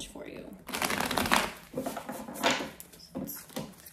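Cards shuffle and riffle against each other close by.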